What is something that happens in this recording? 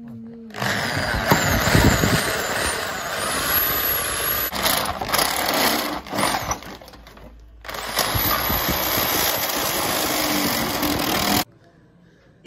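An electric drill whirs loudly as it bores through a thin metal sheet.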